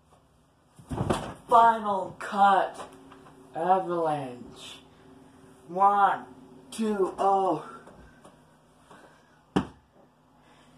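A body thuds onto a soft mattress.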